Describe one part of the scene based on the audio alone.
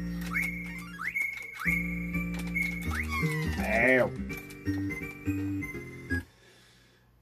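Chiptune video game music plays loudly, then cuts off abruptly.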